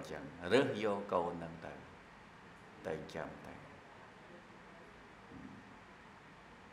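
A man speaks calmly into a microphone close by.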